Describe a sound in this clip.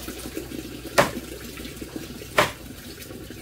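A knife chops through chicken bone with sharp knocks.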